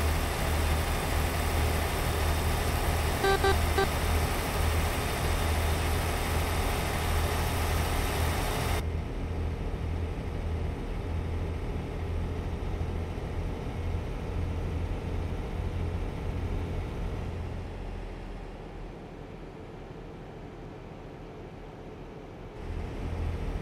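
Road noise roars loudly, then turns muffled.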